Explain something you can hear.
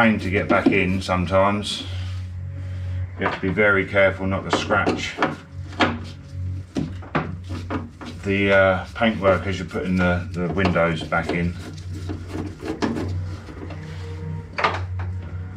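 A screwdriver scrapes and clicks against metal.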